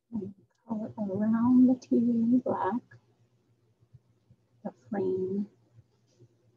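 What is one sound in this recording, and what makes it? A woman speaks calmly and clearly over an online call.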